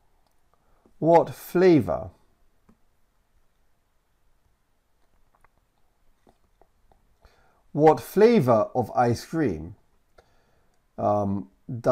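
A man speaks clearly and calmly into a close microphone, in short phrases with pauses.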